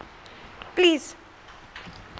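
A young woman gives a short high-pitched laugh into a microphone nearby.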